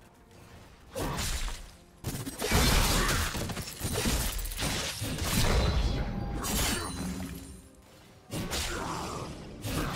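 Magic spells whoosh and burst in a noisy fight.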